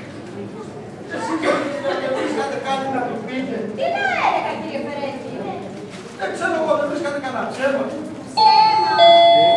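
A man speaks loudly on stage in a large hall.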